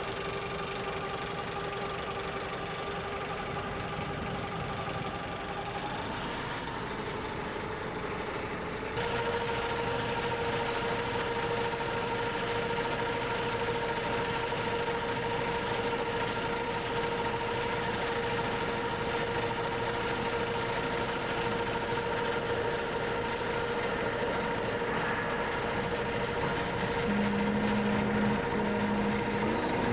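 An aircraft engine drones steadily nearby.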